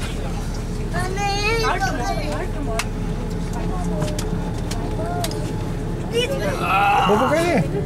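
Adult men and women chatter nearby.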